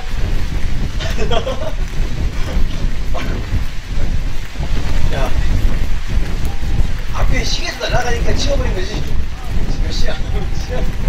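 A man sings into a microphone over a loudspeaker outdoors.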